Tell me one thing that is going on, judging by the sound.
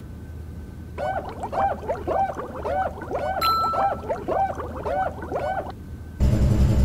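Soap bubbles pop and squeak in quick bursts.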